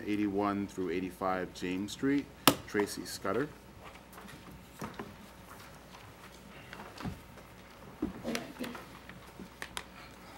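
Papers rustle on a table.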